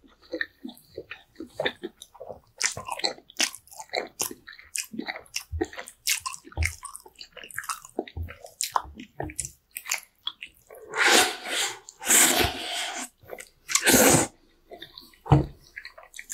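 A man chews wetly with smacking sounds up close.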